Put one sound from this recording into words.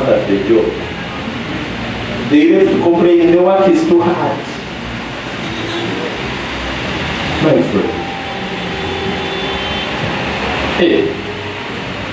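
A man preaches with animation into a microphone, heard through loudspeakers in a large echoing hall.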